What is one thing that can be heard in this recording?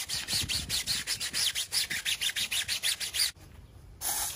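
A brush scrubs rapidly against a wheel.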